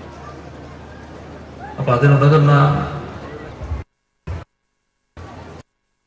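An elderly man speaks firmly into a microphone over a loudspeaker.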